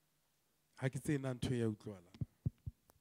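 A man speaks into a microphone in a quiet room.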